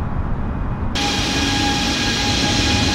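Jet engines roar and whine loudly from outside the airliner.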